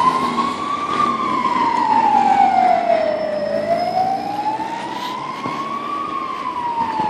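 Cars drive past on a street outdoors.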